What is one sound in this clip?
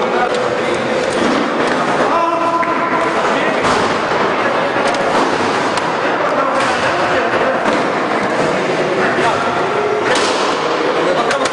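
Several men talk over one another nearby in an echoing hall.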